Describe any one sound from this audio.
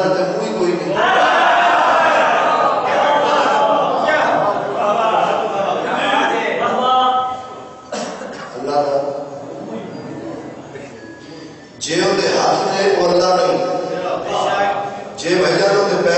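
A man recites loudly and passionately through a microphone.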